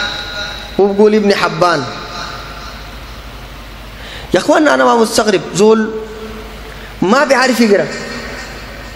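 A man speaks calmly into a microphone in short phrases, with pauses between them.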